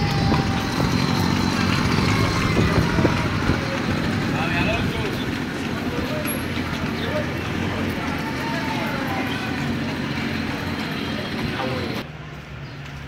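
A motorcycle engine runs on a street outdoors.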